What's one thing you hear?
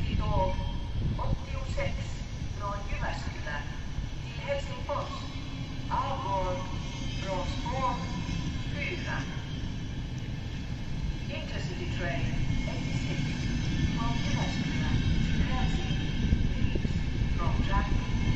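A train rumbles steadily past close by.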